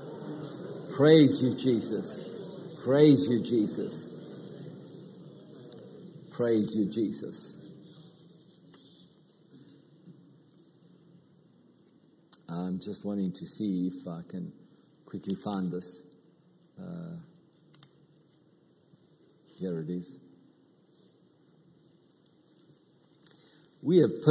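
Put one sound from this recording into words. A middle-aged man speaks slowly and deliberately through a microphone, with long pauses.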